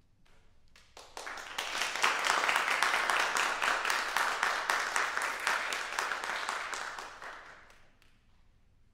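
An audience applauds in an echoing hall.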